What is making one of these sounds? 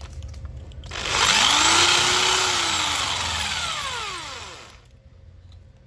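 An electric drill whines loudly as it bores into a wall, then winds down.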